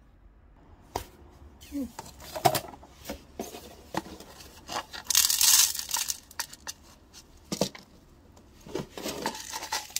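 A ceramic pot scrapes and knocks against a wooden shelf.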